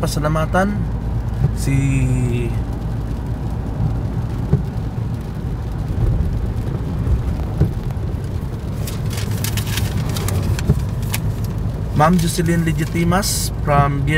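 Rain patters on the windshield.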